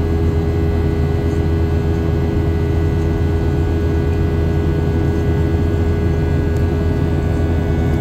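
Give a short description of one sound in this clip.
A jet engine roars steadily, heard from inside an airliner cabin.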